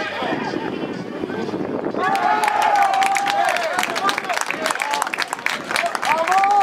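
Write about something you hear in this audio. A crowd of spectators shouts and cheers outdoors at a distance.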